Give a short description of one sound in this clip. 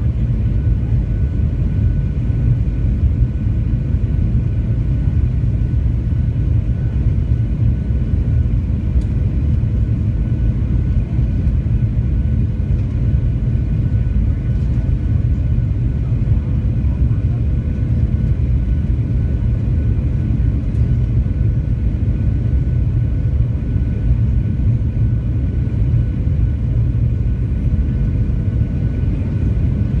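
A jet engine roars steadily in an aircraft cabin.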